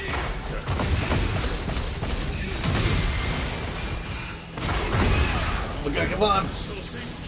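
Heavy blows and crackling energy blasts boom and rumble loudly.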